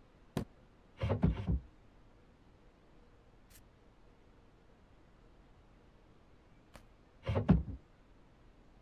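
Objects are set down with light thuds.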